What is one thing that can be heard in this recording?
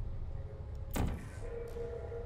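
A game gun fires with a sharp electronic zap.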